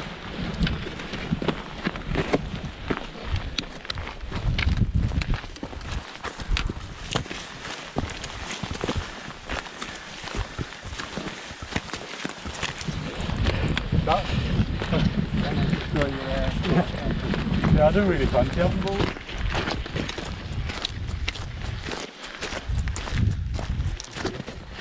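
Boots crunch steadily on rough, stony ground.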